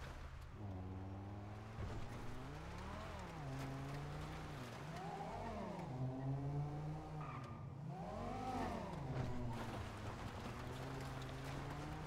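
A car engine hums and revs up and down as the car drives.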